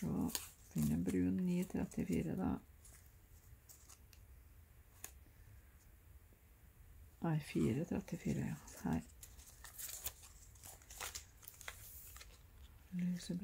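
Cardboard thread cards rustle and click against a metal ring.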